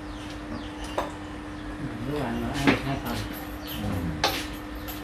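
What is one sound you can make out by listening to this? Chopsticks and spoons clink against bowls.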